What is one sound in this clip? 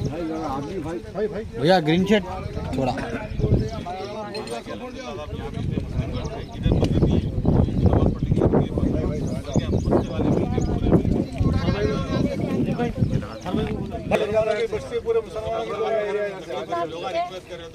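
Several men talk over one another outdoors in a crowd.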